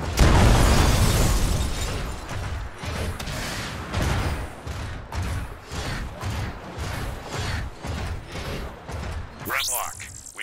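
Heavy metal footsteps stomp in a steady rhythm.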